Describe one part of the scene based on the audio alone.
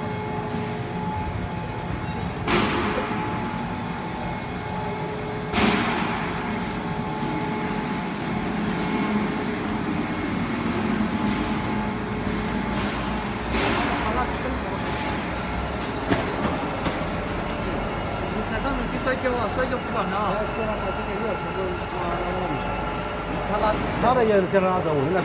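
Factory machinery hums and rumbles steadily.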